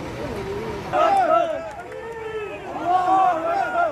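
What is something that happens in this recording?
Men call out loudly close by.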